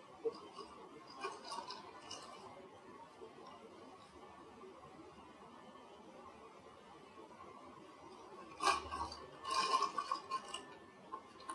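A paper bag crinkles and rustles close by.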